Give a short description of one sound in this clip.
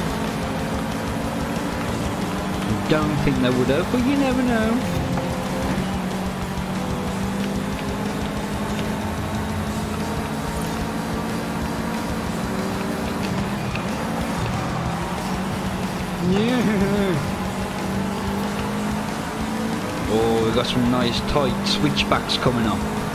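A car engine drones steadily at high revs.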